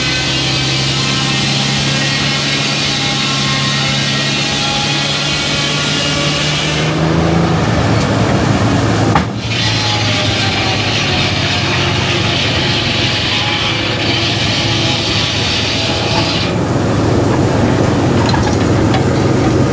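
A large engine runs with a steady, deep hum.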